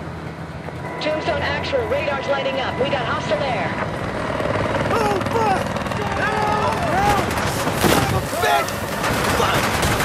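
A man talks urgently close by.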